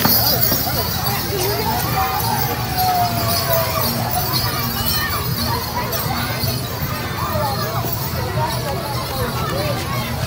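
A crowd of children and adults chatters and calls out loudly outdoors.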